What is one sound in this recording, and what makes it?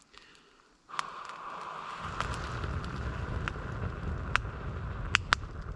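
Embers crackle and pop sharply.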